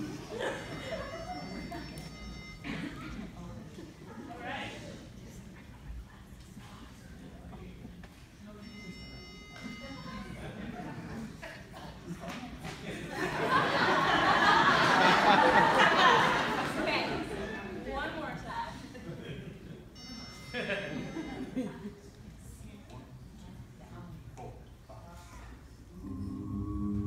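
A young woman speaks into a microphone over loudspeakers in a large hall.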